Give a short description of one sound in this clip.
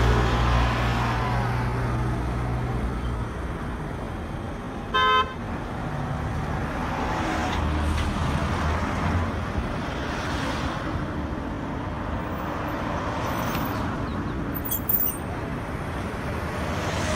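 Cars and minibuses drive past on a road close by.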